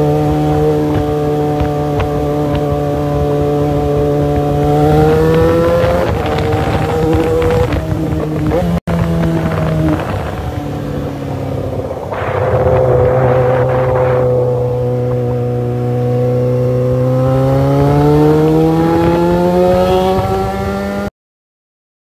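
A motorcycle engine hums steadily and revs up and down while riding.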